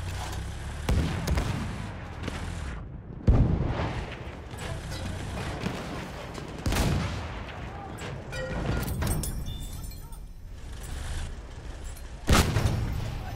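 Tank cannon shots boom loudly.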